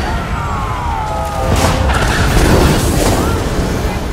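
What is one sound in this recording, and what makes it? Energy beams zap and hum.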